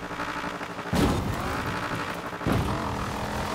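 A car thumps down hard after a jump.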